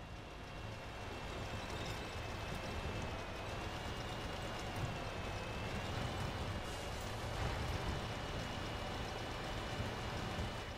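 A tank engine rumbles steadily as the tank drives over rough ground.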